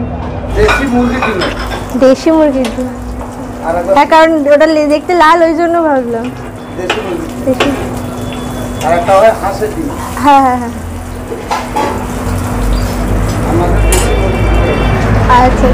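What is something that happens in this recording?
Oil sizzles on a hot griddle.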